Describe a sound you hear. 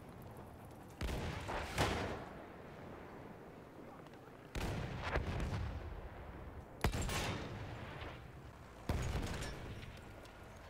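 Explosions boom and rumble close by.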